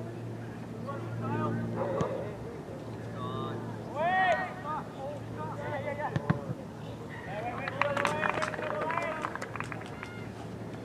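Teenage boys shout to each other in the distance across an open outdoor field.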